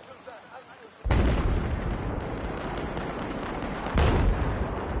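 A rifle fires loud booming shots that ring out and echo.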